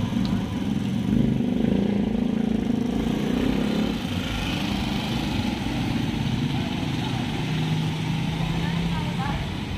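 Motorbike engines hum as they pass by on a street.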